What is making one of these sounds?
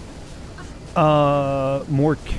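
A man speaks loudly into a close microphone, drawing out his words.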